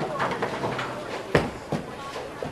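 A bowling ball thuds onto a wooden lane.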